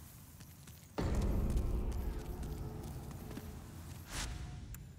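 A low resonant tone swells in suddenly and fades.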